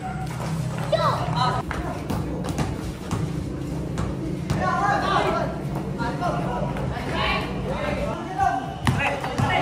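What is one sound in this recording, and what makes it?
Teenage boys shout and call out to each other nearby.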